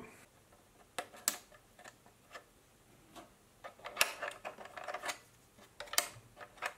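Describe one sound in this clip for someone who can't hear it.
A small plastic cover clicks and scrapes as it slides open.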